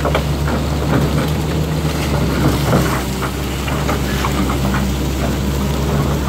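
Loose rocks and dirt tumble and clatter down a slope.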